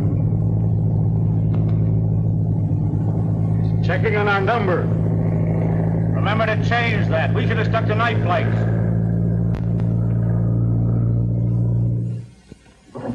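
An airplane engine drones loudly and steadily.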